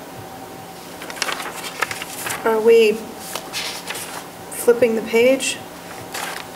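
Paper rustles and shuffles.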